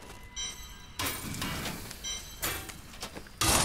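A short crackling burst sounds as an item is broken apart.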